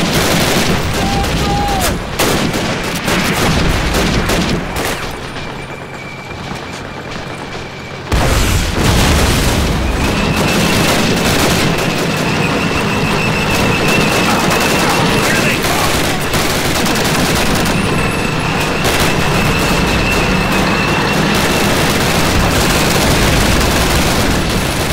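Rifles fire in rapid bursts nearby.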